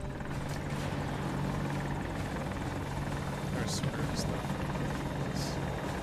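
Helicopter rotors thump steadily close by.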